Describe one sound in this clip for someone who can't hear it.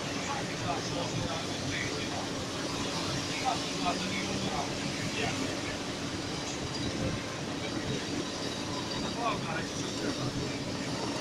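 Rain patters steadily on a car windshield.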